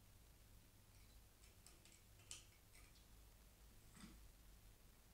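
A small animal scratches and rustles softly among tin cans.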